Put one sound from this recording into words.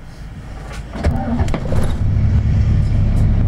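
A truck's engine rumbles loudly as it passes close by.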